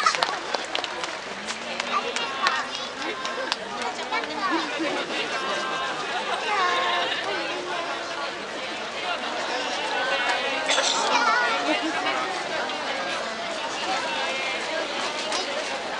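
A crowd of people chatters and calls out.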